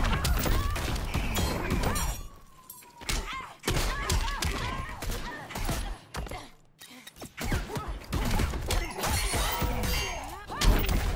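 Heavy punches and kicks land with loud thumps and smacks.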